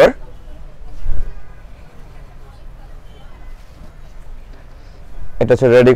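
Fabric rustles as cloth is shaken out.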